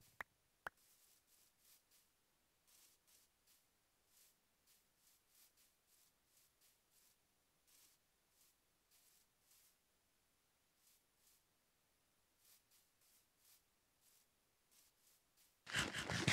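Footsteps rustle softly over grass.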